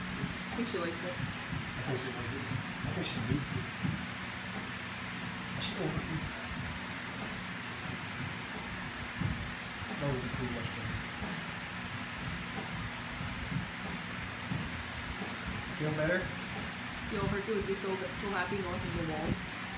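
A dog pants quickly.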